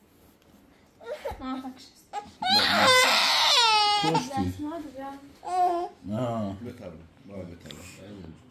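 A toddler cries loudly close by.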